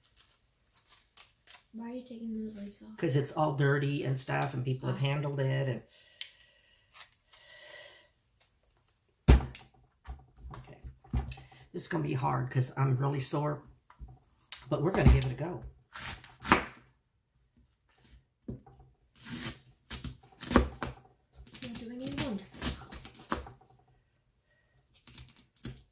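A knife cuts through crisp cabbage leaves with sharp crunches.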